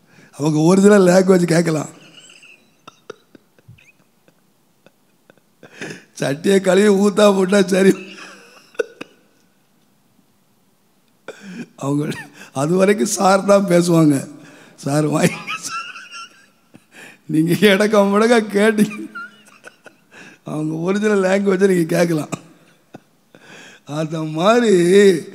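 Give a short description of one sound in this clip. An elderly man sings into a microphone in drawn-out phrases with pauses between them.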